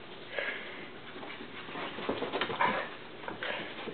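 A dog's paws patter softly on carpet.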